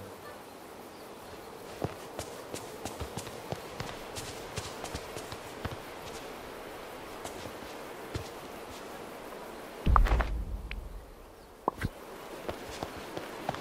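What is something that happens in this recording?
Footsteps patter quickly on stone.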